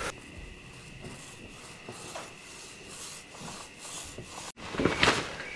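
A paintbrush swishes softly across metal.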